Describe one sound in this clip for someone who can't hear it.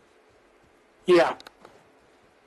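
A man briefly speaks close to a microphone.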